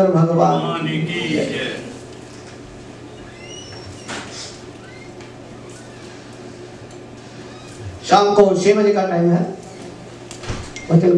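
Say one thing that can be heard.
A man chants into a microphone.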